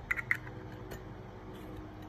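A metal lighter lid clicks.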